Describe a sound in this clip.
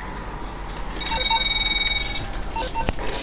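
A phone rings with a high electronic tone.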